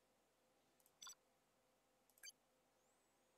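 Short electronic menu clicks sound twice.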